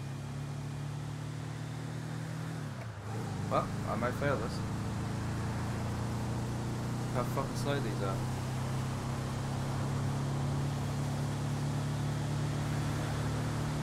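A van's engine hums steadily as it drives along.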